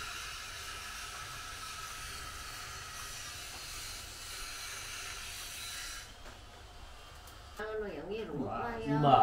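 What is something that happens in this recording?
Thin bamboo strips rustle and tap softly as they are woven by hand.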